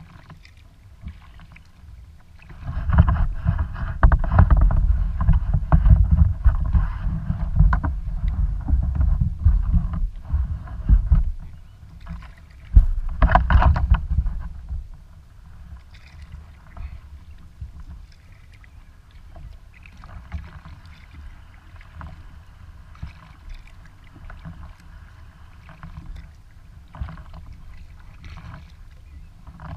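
Water laps softly against a kayak's hull as it glides along.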